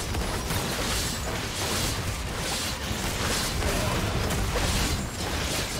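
Spell effects crackle and whoosh amid the clash of a fantasy battle.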